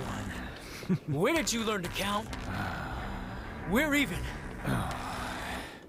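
A second man answers sharply, close by.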